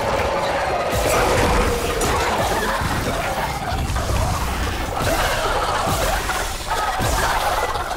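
A creature shrieks.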